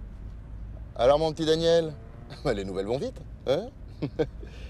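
A man speaks with animation on a phone, close by.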